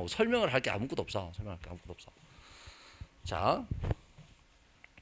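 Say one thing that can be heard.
A man speaks calmly into a microphone, lecturing.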